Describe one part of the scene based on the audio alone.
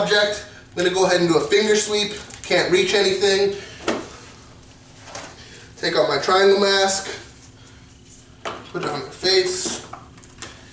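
A man speaks calmly, explaining as he goes.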